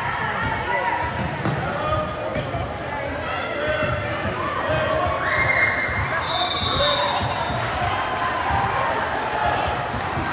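Spectators chatter and call out in the background.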